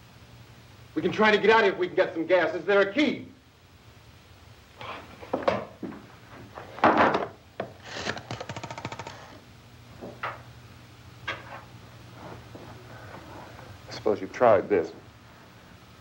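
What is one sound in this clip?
A young man talks into a telephone in short, tense bursts.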